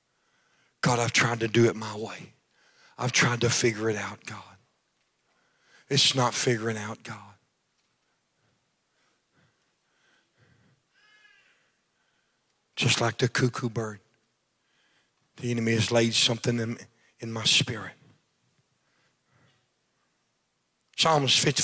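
A man speaks over a microphone in short, emphatic phrases, heard through loudspeakers in a large echoing hall.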